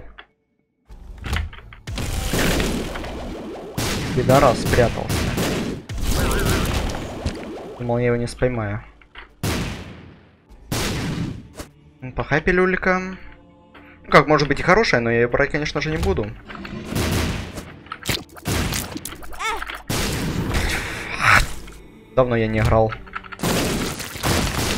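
Game sound effects splatter and burst in quick succession.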